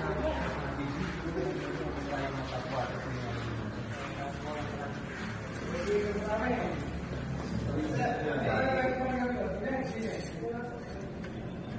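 Several young men talk with one another close by.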